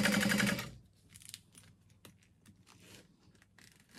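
Fabric rustles softly as hands move it.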